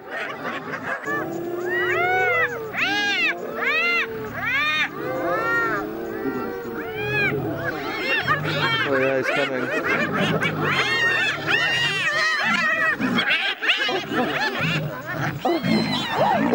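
Hyenas cackle and whoop excitedly.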